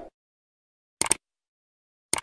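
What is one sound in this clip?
A mouse button clicks twice.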